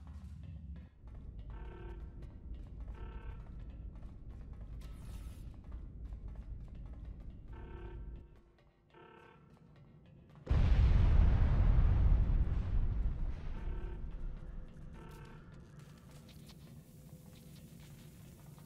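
Footsteps run quickly across a hard metal floor.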